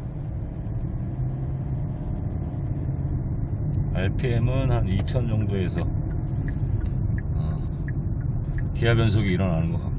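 A car engine hums steadily with low road rumble from inside the cabin.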